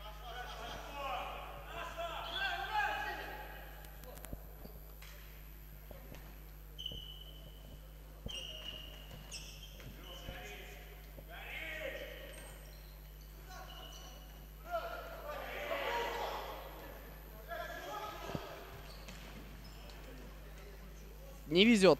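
Men shout to each other across an echoing sports hall.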